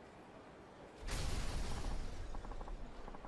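A loud burst of smoke whooshes out.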